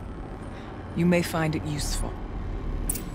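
A woman speaks in a low, tense voice, close up.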